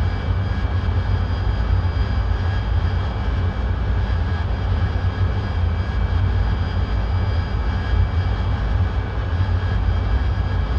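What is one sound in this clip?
An aircraft engine drones steadily with a low rumble and a faint high whine.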